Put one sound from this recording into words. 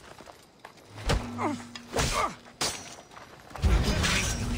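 A sword clashes against armour in a fight.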